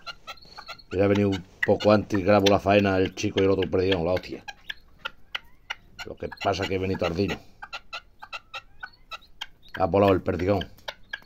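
A partridge calls loudly, close by, in harsh repeated bursts.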